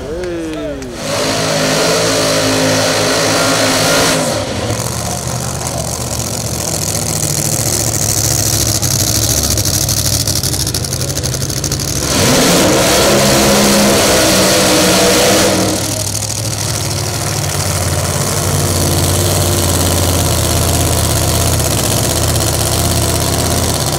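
A drag racing car's engine roars very loudly.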